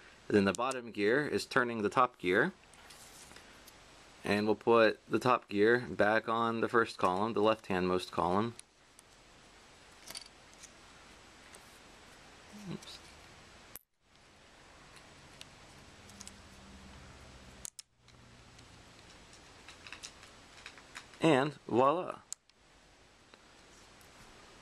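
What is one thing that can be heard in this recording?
Small plastic pieces click and tap softly against each other.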